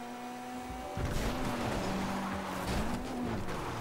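A car crashes and scrapes against rock.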